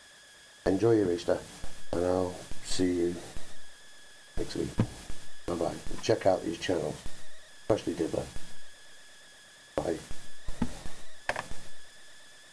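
A middle-aged man talks close to a microphone, calmly and casually.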